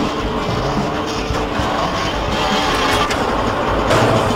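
A motorbike engine revs and whines.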